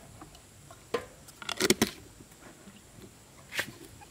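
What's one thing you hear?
A plastic lid is screwed onto a jar.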